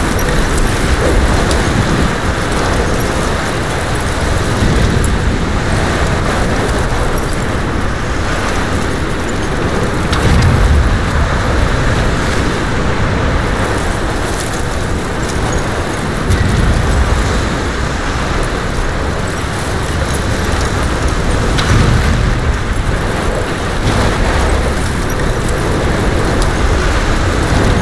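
A strong wind roars and howls steadily.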